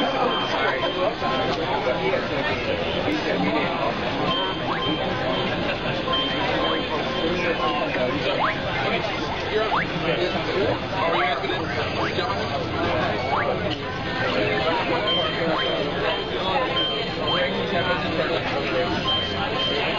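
Upbeat game menu music plays steadily.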